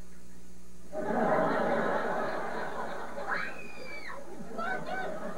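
A woman screams in shock.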